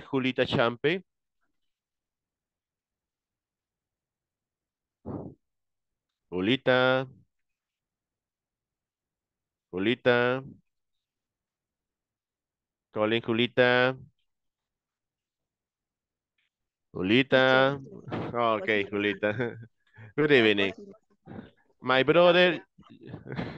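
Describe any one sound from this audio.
A man speaks in short, clear phrases over an online call, with pauses between them.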